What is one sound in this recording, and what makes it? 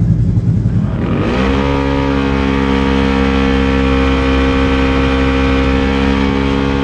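An engine revs up quickly and holds a loud, steady high-pitched roar.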